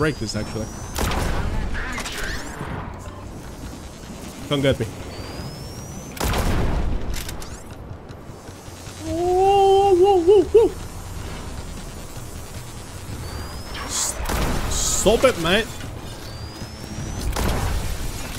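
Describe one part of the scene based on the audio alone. Gunshots fire with sharp bangs.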